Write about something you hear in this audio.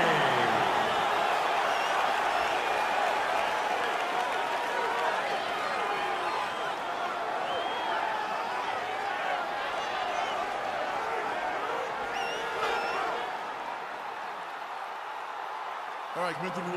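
A large crowd cheers and shouts in a big echoing arena.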